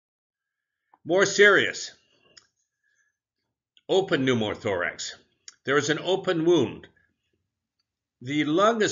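An elderly man speaks calmly into a microphone, lecturing in short phrases.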